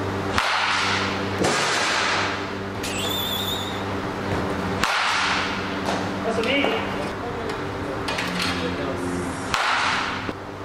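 A wooden bat cracks sharply against a baseball, over and over.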